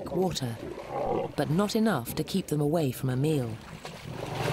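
Lions growl and snarl while feeding.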